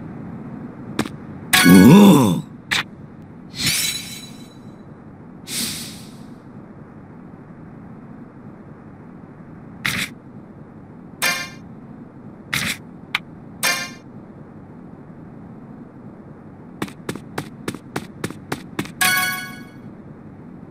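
Short chimes and blips sound now and then.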